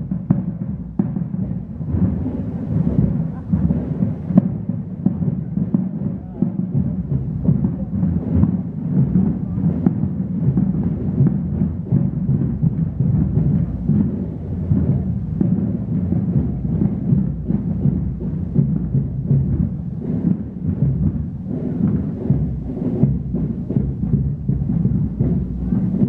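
A crowd of adults murmurs and chats quietly.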